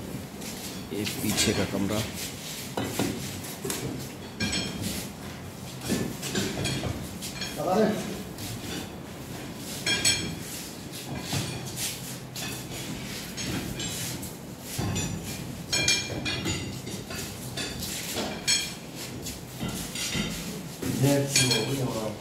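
Metal clinks and clanks in short bursts.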